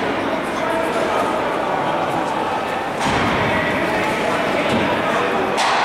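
Hockey sticks clack on the ice.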